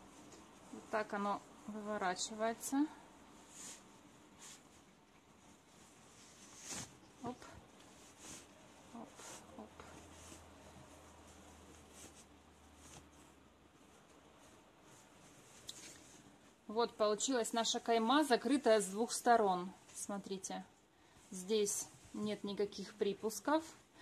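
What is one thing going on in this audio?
Cloth rustles softly as hands fold and smooth it.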